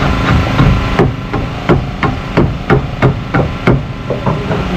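A hammer taps on wood in a quick, even rhythm.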